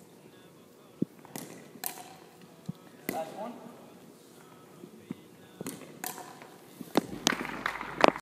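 Paddles strike a plastic ball with sharp pops in a large echoing gym.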